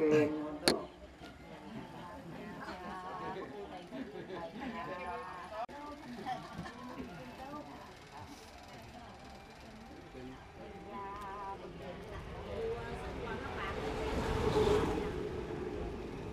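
A crowd of people murmurs quietly in a room.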